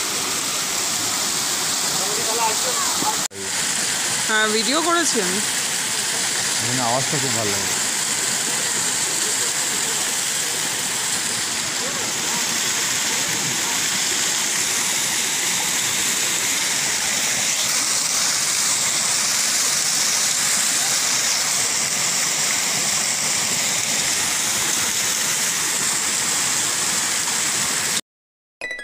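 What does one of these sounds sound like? A waterfall rushes and splashes steadily over rocks close by.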